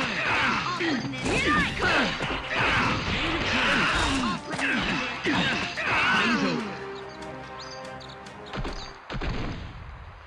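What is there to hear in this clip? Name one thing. Blows and slashes land with sharp thuds and whooshes in a fast fight.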